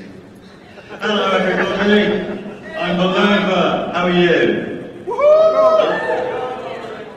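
A man speaks with animation through a loudspeaker in a large hall.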